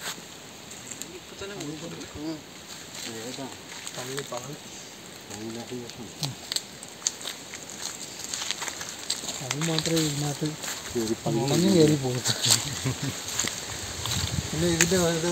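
A man talks quietly outdoors.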